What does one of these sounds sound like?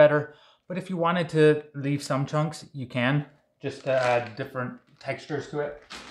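A plastic bag crinkles in a man's hands.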